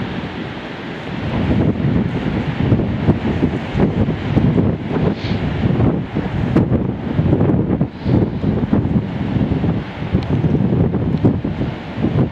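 Strong wind gusts roar and buffet the microphone outdoors.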